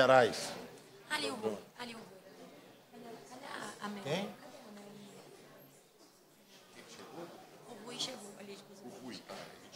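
Several people murmur and talk quietly in a large room.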